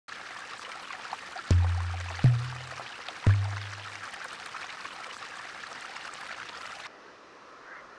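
Water rushes and splashes over rocks.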